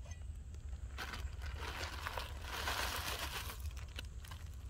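A packet rustles as dry food pours into a metal pot.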